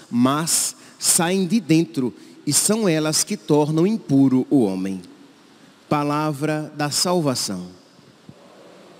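A young man speaks into a microphone in a calm, measured voice.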